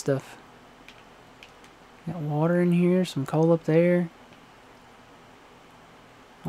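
Water flows steadily nearby.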